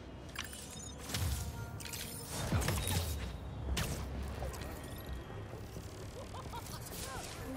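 Whooshing swings rush through the air.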